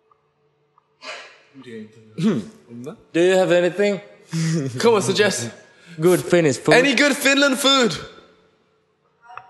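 A man asks questions into a microphone.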